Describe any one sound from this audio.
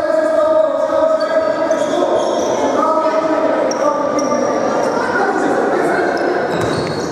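Sneakers squeak on a court in a large echoing hall.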